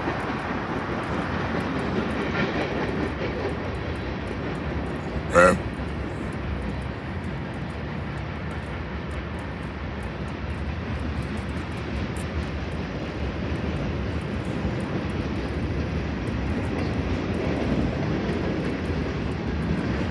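Wind blows steadily outdoors, rumbling low.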